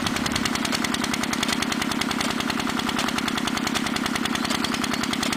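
A sprinkler sprays water with a steady hiss.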